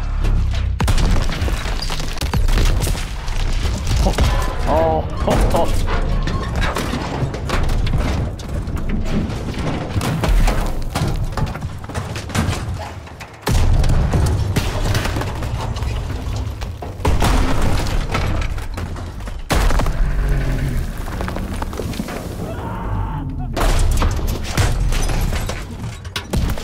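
Explosions boom and rumble loudly.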